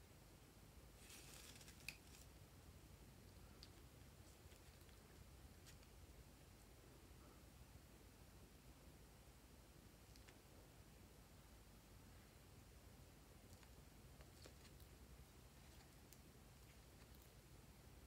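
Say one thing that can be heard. Thick slime squelches softly as it is squeezed out of a rubber toy.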